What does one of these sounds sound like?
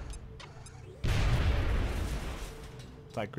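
A grenade explodes with a loud, rumbling blast.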